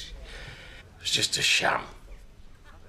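A young woman speaks in a low, tense voice.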